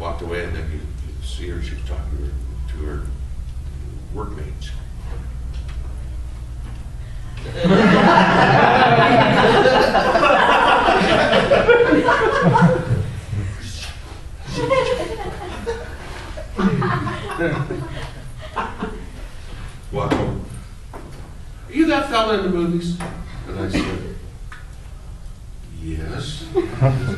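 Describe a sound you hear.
A man talks with animation, a little distant, in a room with a slight echo.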